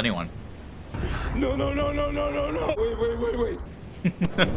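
A man speaks in a shocked, strained voice.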